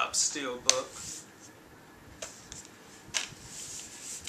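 A plastic case rustles and clicks in a man's hands.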